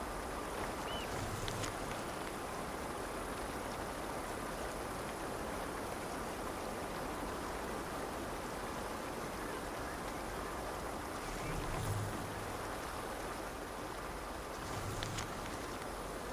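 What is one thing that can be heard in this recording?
Paper rustles as a note is unfolded and folded.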